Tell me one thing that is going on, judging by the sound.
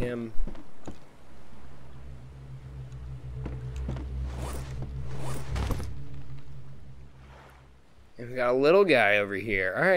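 Sea waves wash and lap gently.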